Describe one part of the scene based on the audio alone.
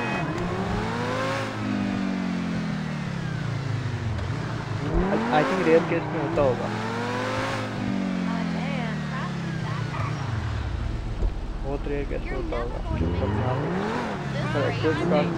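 A sports car engine revs up and down repeatedly.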